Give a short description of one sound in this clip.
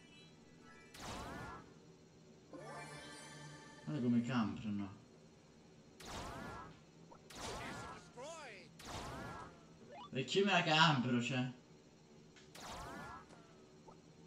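Electronic blaster shots fire in short, sharp bursts.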